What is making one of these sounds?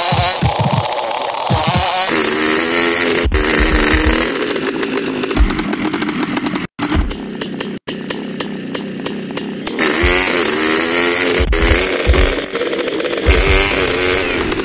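A motorbike engine revs.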